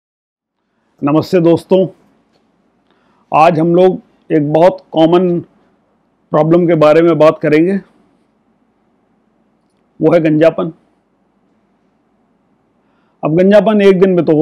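A middle-aged man speaks calmly and clearly into a close microphone, in short phrases with pauses.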